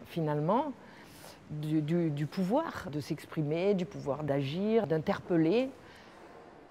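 An older woman speaks calmly and close to a clip-on microphone.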